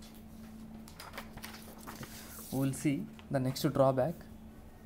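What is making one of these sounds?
Paper rustles as a sheet is turned over.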